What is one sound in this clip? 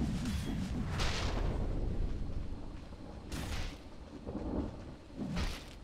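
Magic spell effects whoosh and crackle in short bursts.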